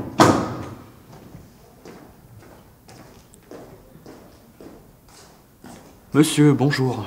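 Footsteps tap slowly across a hard floor in an echoing hall.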